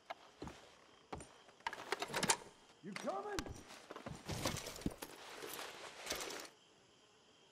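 A wooden drawer slides open and objects rattle inside.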